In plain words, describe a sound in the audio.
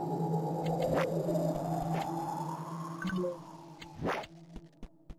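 A game menu clicks as items are selected.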